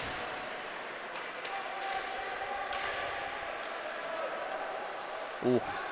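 Skates scrape and hiss across ice in a large echoing arena.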